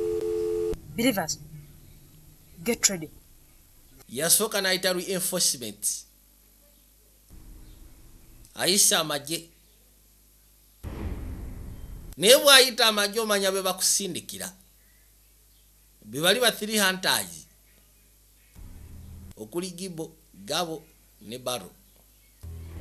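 A young woman speaks close by with feeling.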